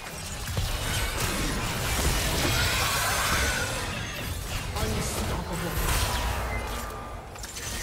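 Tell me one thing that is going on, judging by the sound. Magic blasts and clashing strikes burst during a fight in a video game.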